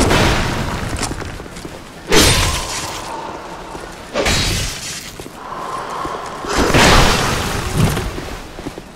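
A heavy weapon swings and thuds against a shield.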